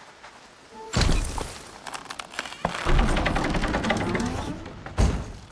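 Heavy rocks rumble and crash as they shift.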